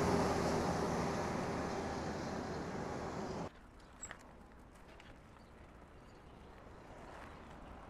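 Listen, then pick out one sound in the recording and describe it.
Bicycle tyres roll over the road.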